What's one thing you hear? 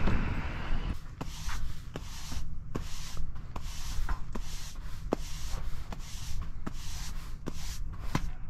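A stiff broom sweeps across paving stones in quick, repeated scraping strokes.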